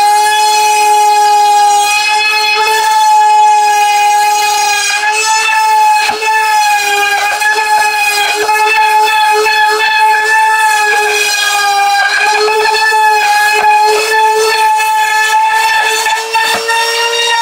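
A small rotary tool whines steadily at high speed while grinding.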